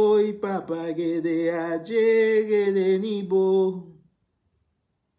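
A man sings close by.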